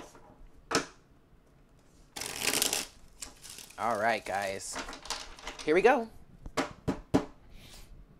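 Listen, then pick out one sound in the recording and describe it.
A deck of cards taps on a table.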